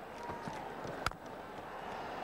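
A bat strikes a cricket ball with a sharp knock.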